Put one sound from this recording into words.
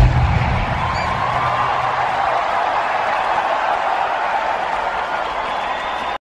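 A large crowd cheers and screams steadily in a huge echoing arena.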